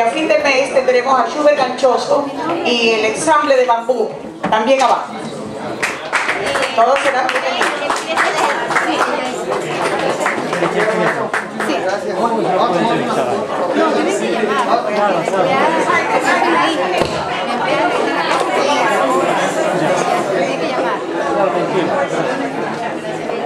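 A crowd of people chatter loudly nearby.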